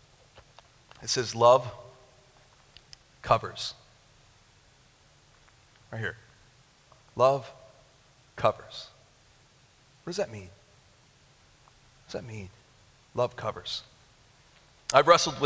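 A young man speaks into a microphone in short bursts with pauses, heard through loudspeakers in a large room.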